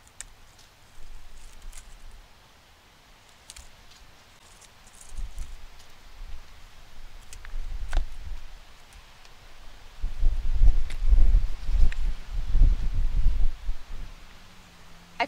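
Soil rustles as a plant is loosened from its pot.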